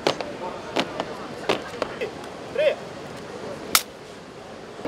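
Boots stamp in step on pavement.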